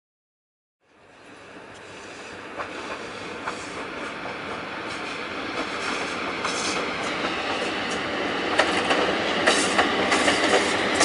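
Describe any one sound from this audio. An electric locomotive hauls a train by, growing louder as it approaches.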